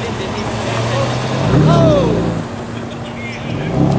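A sports car's exhaust roars loudly as it accelerates away.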